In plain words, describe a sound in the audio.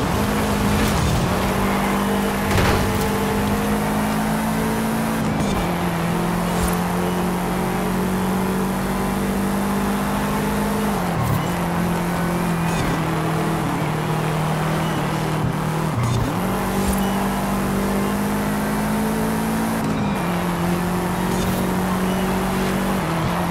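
A racing car engine roars at high revs, shifting gears up and down.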